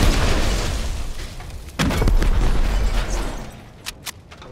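Explosions boom and crackle loudly.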